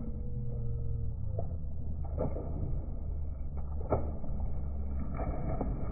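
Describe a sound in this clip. Bodies splash into water one after another.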